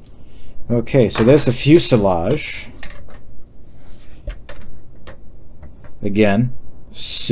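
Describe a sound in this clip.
A plastic model kit frame clicks and rattles softly as it is handled.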